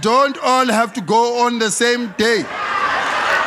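A man sings out loudly through a microphone.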